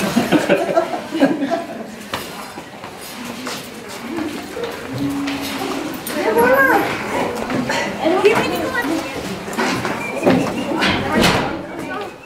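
Footsteps climb tiled stairs.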